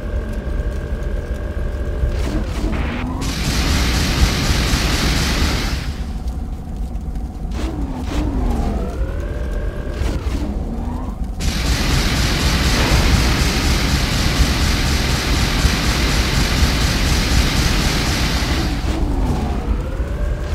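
A vehicle engine rumbles low and steadily.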